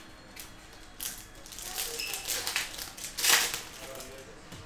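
Foil card packs crinkle and rustle as they are torn open.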